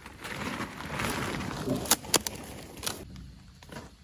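A woven plastic sack rustles close by.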